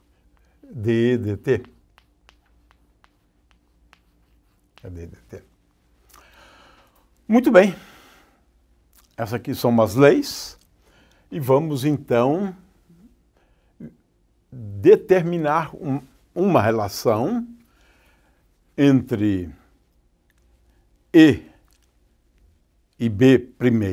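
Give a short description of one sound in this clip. A man speaks calmly in a lecture, close to a microphone.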